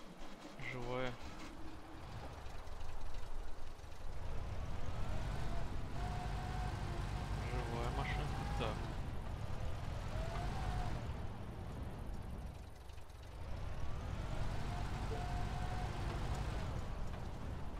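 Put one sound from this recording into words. A vehicle engine rumbles low and revs up and down as it drives.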